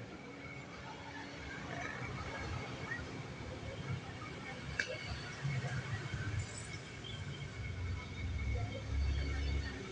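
Metal bicycle parts clink and rattle under a man's hands.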